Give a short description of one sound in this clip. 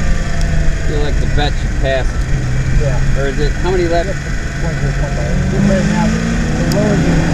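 A man speaks briefly inside the car.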